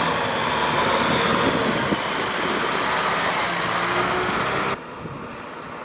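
Tractor wheels churn and splash through wet mud.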